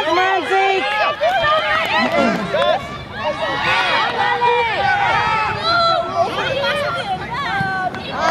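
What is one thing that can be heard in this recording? Children shout and call out excitedly outdoors.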